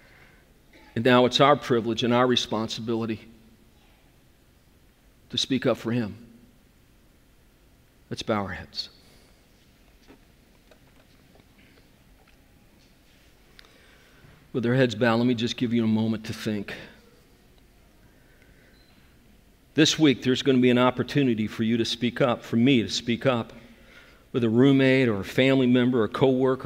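A middle-aged man speaks slowly and deliberately through a microphone, with long pauses.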